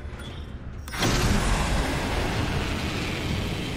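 A strong rush of wind roars as a figure launches and falls through the air.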